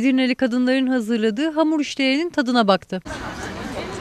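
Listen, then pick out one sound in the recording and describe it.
A middle-aged woman speaks with animation into a microphone close by.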